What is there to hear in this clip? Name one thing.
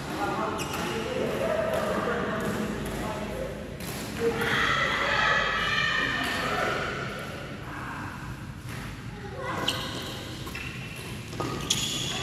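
Men talk and call out to each other in a large echoing hall.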